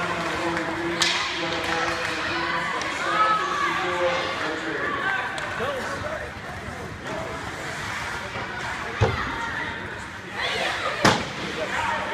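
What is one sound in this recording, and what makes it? Hockey sticks knock against the puck with sharp clacks.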